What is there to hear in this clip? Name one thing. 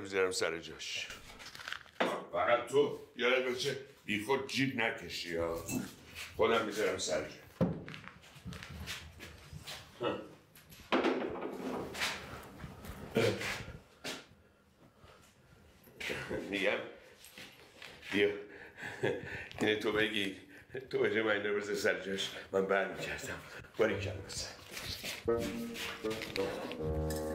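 An elderly man talks with animation nearby.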